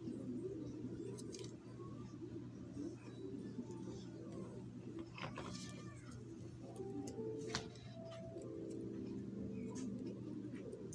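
Fingers handle stiff wires with faint taps and scrapes.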